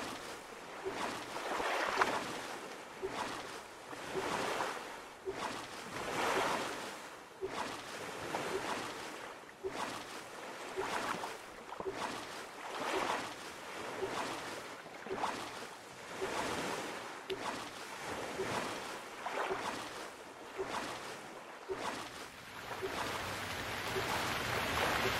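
A paddle splashes through water in a steady rhythm.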